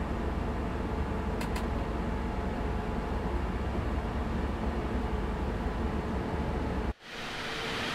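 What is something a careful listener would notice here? A locomotive engine rumbles steadily, heard from inside the cab.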